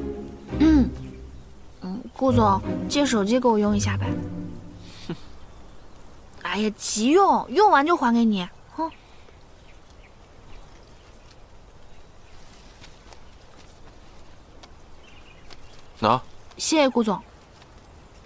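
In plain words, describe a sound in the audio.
A young woman speaks softly and pleadingly.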